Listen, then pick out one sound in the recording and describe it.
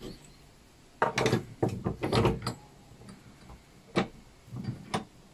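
A wooden piece knocks against a bench vise.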